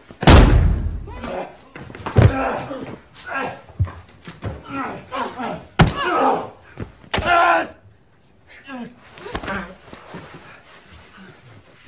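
A man grunts and groans as he struggles.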